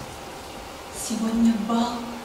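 A young woman speaks clearly and expressively, close by.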